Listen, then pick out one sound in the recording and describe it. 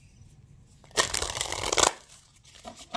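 Paper pages riffle and rustle close by.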